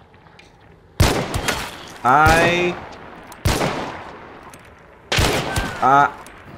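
Loud gunshots ring out one after another and echo.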